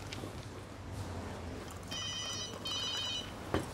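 A young woman speaks quietly into a phone.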